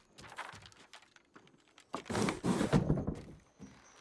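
A wooden sliding door slides open.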